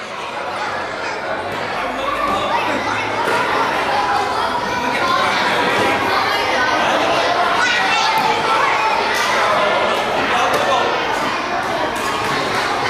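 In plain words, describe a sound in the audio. A crowd of children and adults chatter excitedly nearby.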